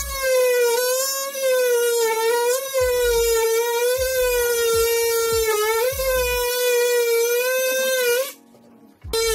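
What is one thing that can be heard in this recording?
An oscillating multi-tool buzzes loudly, cutting with a steady high whine.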